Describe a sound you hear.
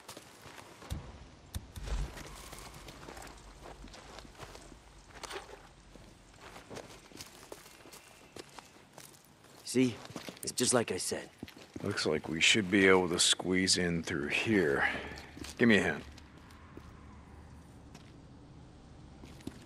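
Footsteps crunch on gravel and dirt.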